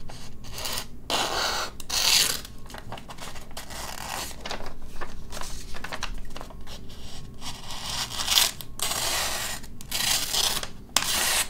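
A knife blade slices through a sheet of paper with a crisp scraping.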